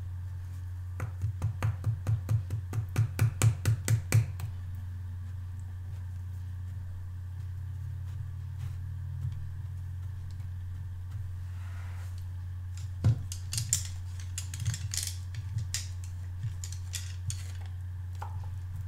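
Fingers rub and squeak against a soft rubber scrubber.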